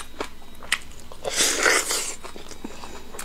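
A man tears meat from a bone with his teeth.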